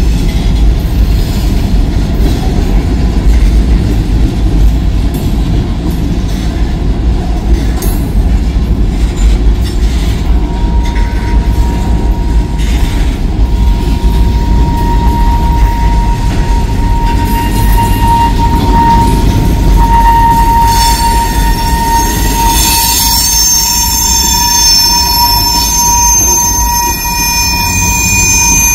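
Freight cars rumble and clatter steadily along the rails close by.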